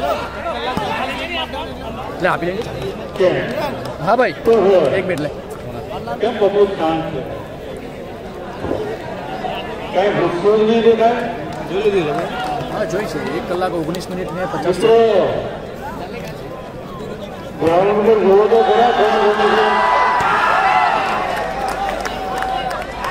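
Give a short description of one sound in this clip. Men on a court shout to one another loudly.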